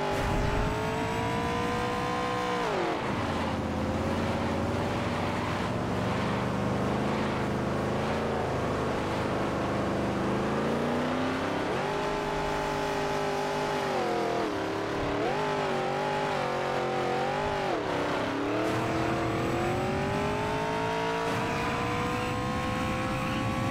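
A stock car engine roars at high speed, its pitch dropping and rising as it slows and speeds up.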